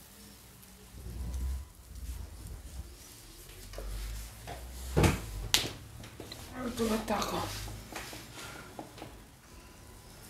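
Objects knock and clatter as a man handles them.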